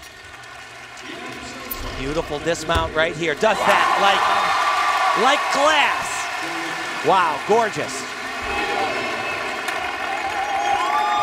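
A large crowd cheers and whistles loudly in a big echoing arena.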